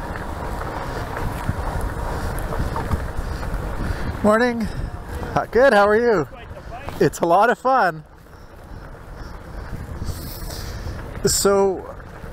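Bicycle tyres roll and crunch steadily over a gravel path.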